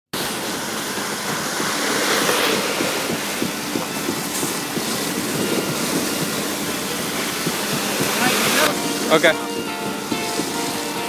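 Wet concrete pours and splatters steadily through a hose.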